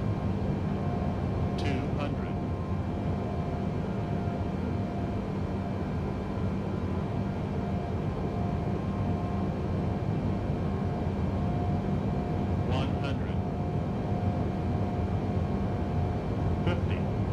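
Jet engines hum and roar steadily inside a cockpit.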